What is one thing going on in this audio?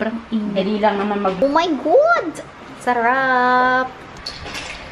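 A young woman speaks playfully close by.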